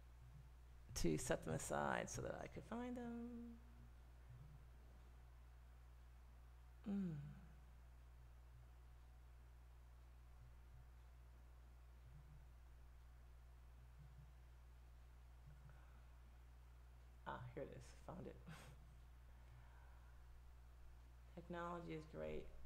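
A middle-aged woman speaks calmly into a close microphone, with pauses.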